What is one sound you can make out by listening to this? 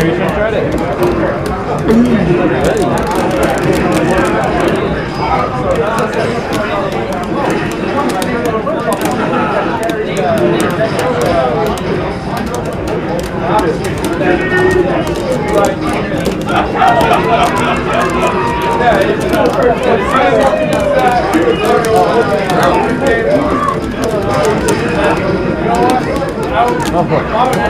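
Upbeat game music plays from a television speaker.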